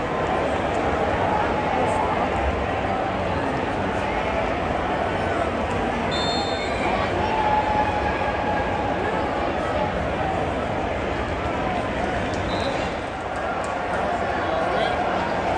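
A large stadium crowd roars and cheers loudly all around.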